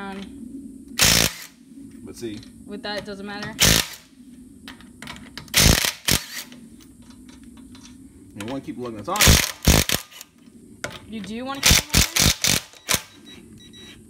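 A cordless impact wrench whirs in short loud bursts.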